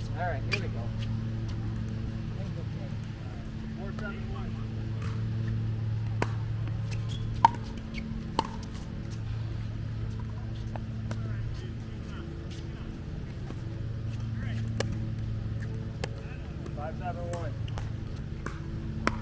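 Paddles strike a plastic ball outdoors with sharp pops.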